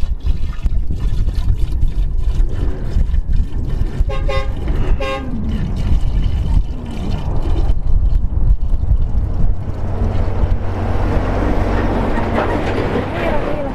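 Liquid glugs as it is poured from a plastic jug.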